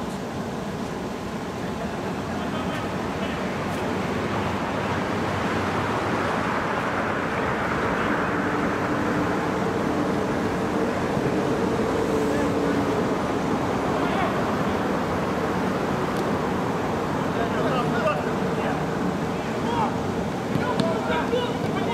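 Players shout to each other across a pitch.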